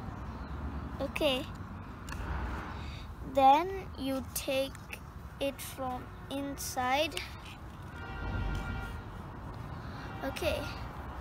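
A young girl speaks nearby in a high, lively voice.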